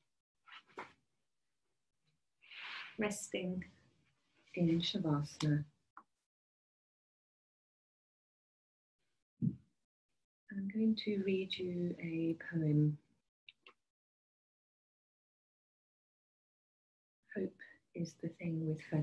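A woman speaks calmly and gently into a microphone, with pauses.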